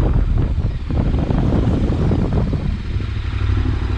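A van swishes past close by.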